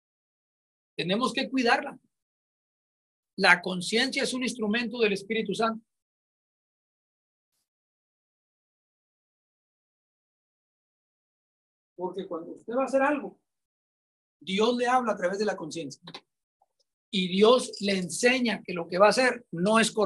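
A middle-aged man speaks with animation, heard through a microphone in a quiet room.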